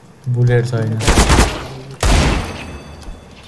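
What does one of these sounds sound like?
Gunshots crack loudly in bursts.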